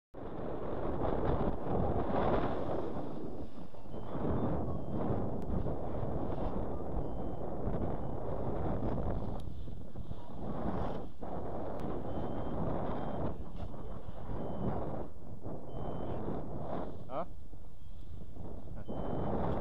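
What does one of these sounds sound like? Strong wind buffets a microphone outdoors.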